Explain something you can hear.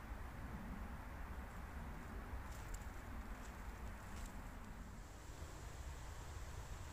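Fingers brush and rub against a mushroom up close.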